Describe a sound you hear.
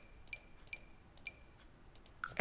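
A computer game's menu gives short clicking chimes.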